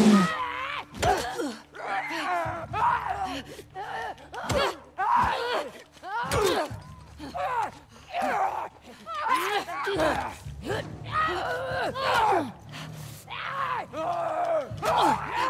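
Heavy blows land in a scuffle.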